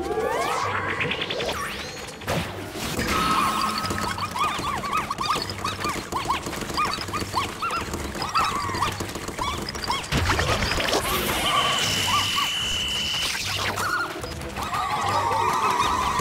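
Upbeat game music plays with a steady, bouncy beat.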